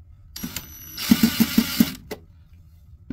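A power screwdriver whirs briefly.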